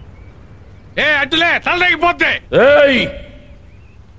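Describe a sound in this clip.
A man shouts angrily and loudly.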